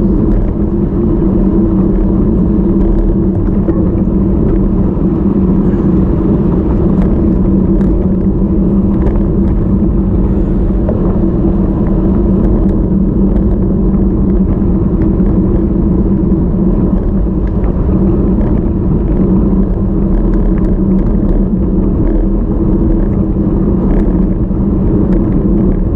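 Bicycle tyres hum steadily on smooth tarmac.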